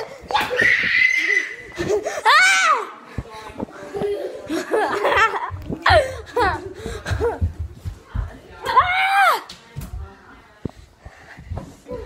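A young boy shouts and squeals excitedly, close to the microphone.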